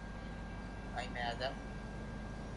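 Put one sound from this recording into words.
A man speaks briefly in a lower voice, a little farther off.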